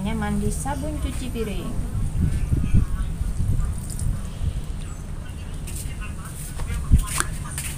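Plastic plant pots knock and rustle as they are handled.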